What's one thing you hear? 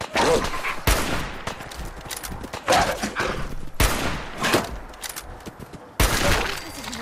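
Rifle shots boom loudly, one after another.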